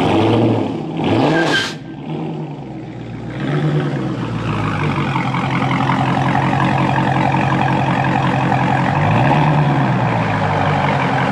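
A car engine revs up briefly, several times.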